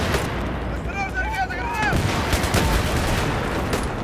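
An explosion booms with a deep blast.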